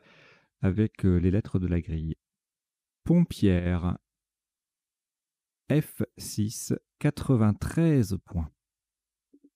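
A man speaks calmly close to a microphone, with pauses.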